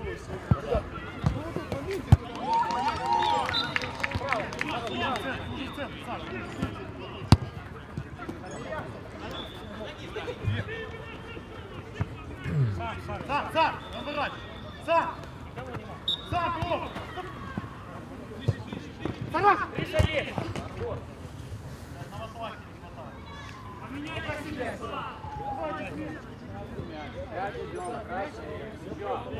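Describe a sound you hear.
Young men shout and call out to each other across an outdoor pitch.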